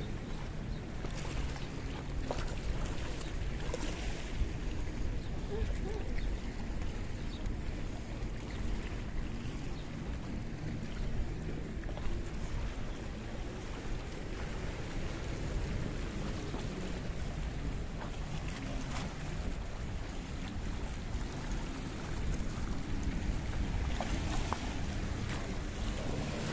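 Small waves lap and splash against rocks.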